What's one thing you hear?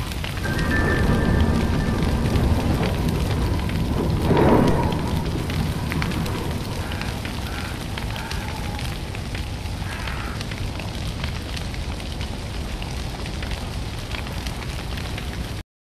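A bonfire crackles and pops steadily.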